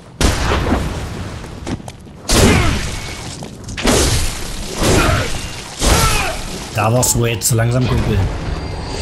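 Heavy blades slash and strike flesh with wet thuds.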